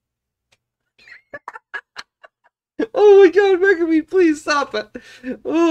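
A man laughs softly close by.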